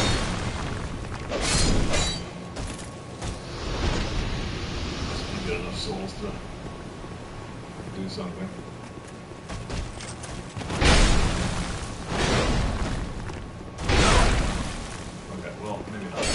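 Heavy blows and sword swings crash and whoosh in a fight.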